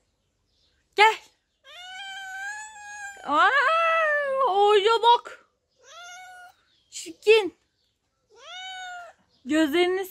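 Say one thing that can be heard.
A cat meows loudly and repeatedly, close by.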